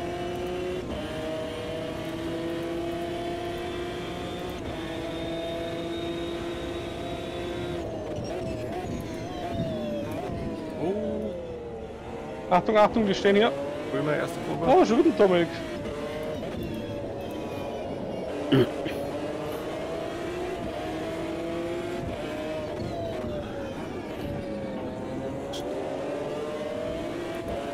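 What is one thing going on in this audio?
A racing car engine roars steadily, rising and falling in pitch as the gears shift.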